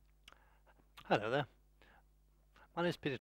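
An elderly man speaks calmly toward a microphone.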